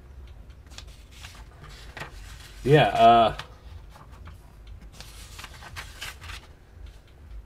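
Paper pages rustle and flip as a comic book is leafed through.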